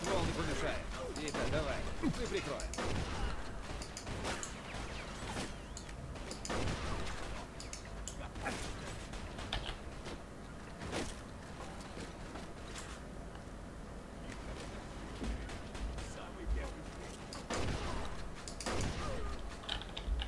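Shotgun blasts ring out with echoes.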